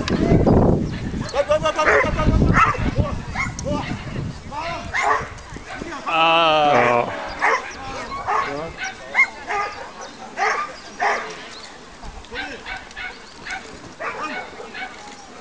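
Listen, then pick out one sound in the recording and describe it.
A woman calls out short, brisk commands to a dog outdoors.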